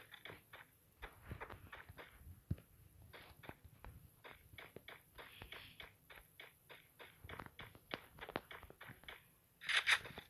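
Footsteps patter quickly on a wooden floor.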